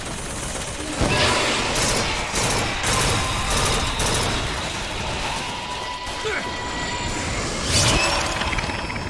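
A gun fires several loud shots in quick succession.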